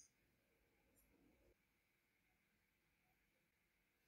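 Fingers click and tap on small plastic parts.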